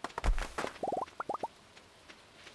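Short rising chimes pop as items are picked up.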